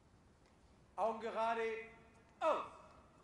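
A man shouts a drawn-out military command outdoors.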